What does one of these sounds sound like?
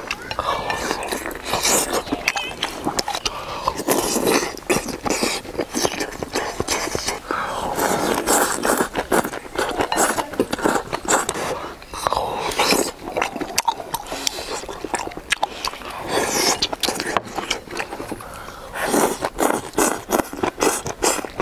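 A young man slurps food loudly up close.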